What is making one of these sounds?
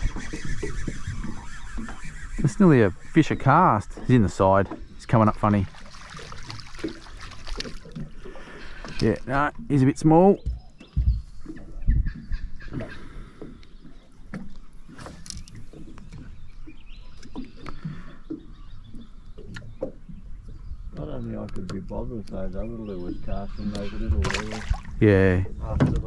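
Small waves lap against a boat's hull.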